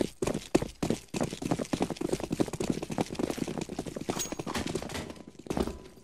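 Footsteps run in a video game.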